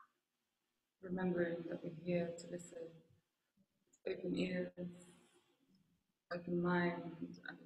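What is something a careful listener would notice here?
A woman speaks calmly into a microphone, heard through an online call.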